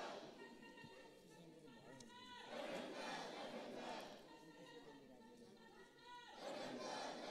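A large crowd of men and women shouts and chants loudly in a big echoing hall.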